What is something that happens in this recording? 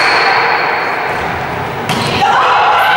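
A volleyball is smacked hard by a player.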